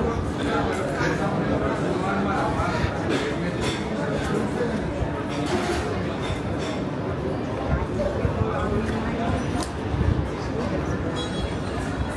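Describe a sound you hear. A crowd of men and women chatter nearby, outdoors.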